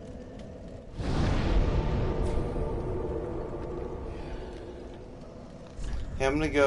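A fire flares up with a loud whoosh that slowly fades.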